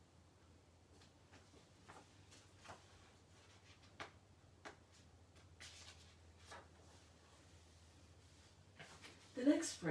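Paper rustles as book pages are turned.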